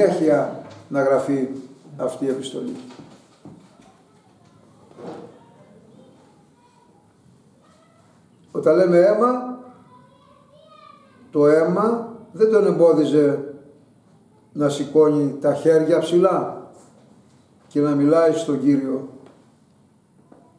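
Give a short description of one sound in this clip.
An elderly man speaks calmly and slowly, close by, with pauses.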